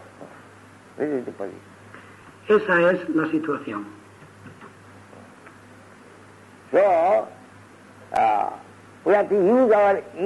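An elderly man speaks in short, lilting bursts through a recording.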